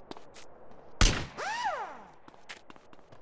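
A rifle fires a single loud shot that rings out.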